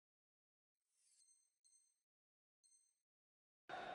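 Countdown beeps sound three times.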